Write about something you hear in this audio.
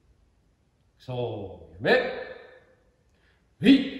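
A man calls out loudly in short commands, in an echoing hall.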